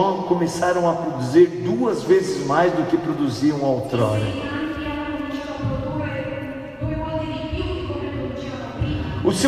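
A young man sings into a microphone, heard through loudspeakers in a large echoing hall.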